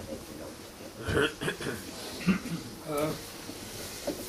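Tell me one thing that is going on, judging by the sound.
An elderly man speaks briefly, nearby.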